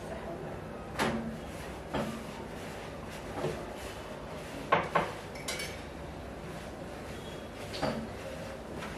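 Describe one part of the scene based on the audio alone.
Metal pots and utensils clink and clatter now and then.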